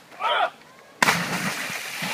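Water splashes loudly as someone jumps in.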